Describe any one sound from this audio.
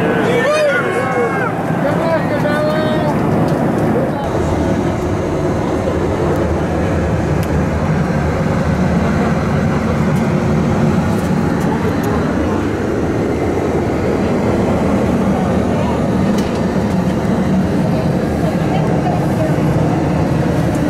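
A jet engine roars steadily and low throughout.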